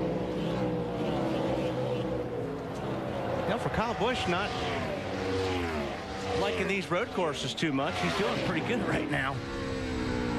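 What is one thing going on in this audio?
Several race car engines roar past one after another, their pitch sweeping down as they pass.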